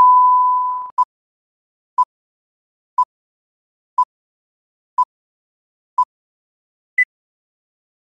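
Short beeps count down once a second, ending with a higher beep.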